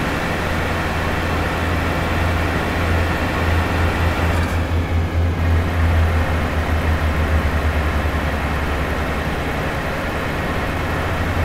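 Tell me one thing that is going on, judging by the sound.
A truck engine rumbles steadily while driving on a highway.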